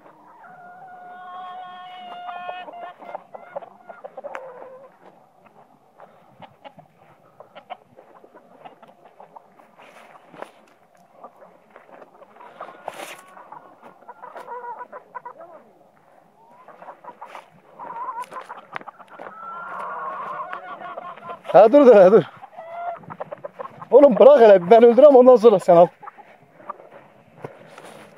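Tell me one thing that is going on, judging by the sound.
Hens cluck and chatter nearby.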